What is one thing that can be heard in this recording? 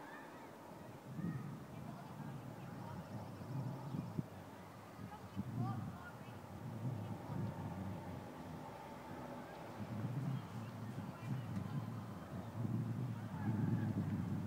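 Wind blows in low gusts outdoors.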